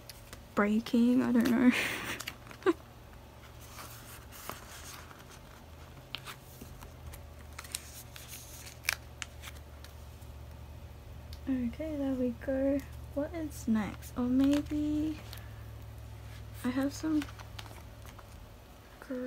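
Plastic binder sleeves rustle and crinkle as pages turn.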